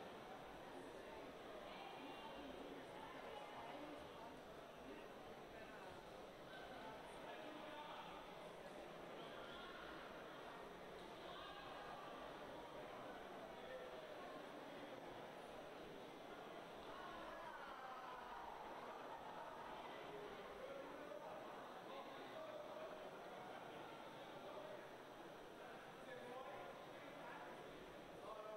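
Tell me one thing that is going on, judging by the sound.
A crowd chatters and cheers in a large echoing hall.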